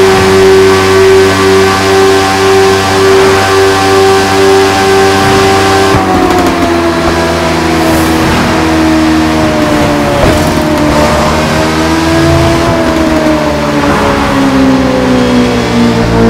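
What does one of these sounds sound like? A motorcycle engine roars steadily at high revs, then its pitch slowly falls as it slows down.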